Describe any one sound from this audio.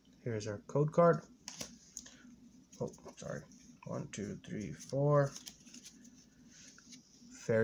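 A paper card rustles as a hand handles it.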